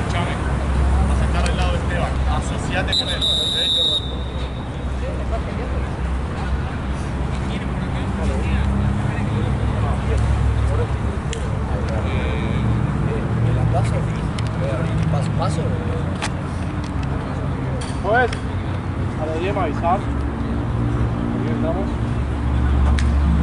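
Young men call out to each other across an outdoor pitch.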